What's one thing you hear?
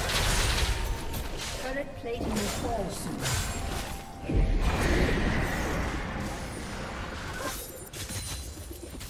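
Game spells whoosh and crackle during a fantasy battle.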